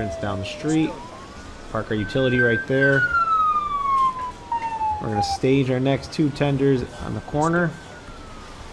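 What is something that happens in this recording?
A fire truck horn blares in short, loud blasts.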